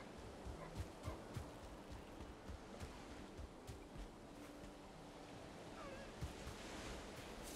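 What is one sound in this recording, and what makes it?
Footsteps crunch through grass at a steady walking pace.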